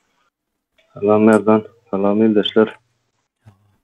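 A young man speaks calmly into a microphone over an online call.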